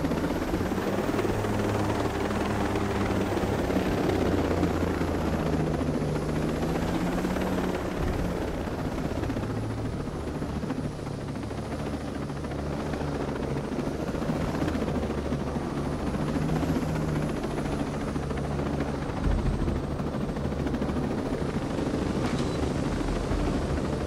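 A helicopter's rotor thumps steadily close by.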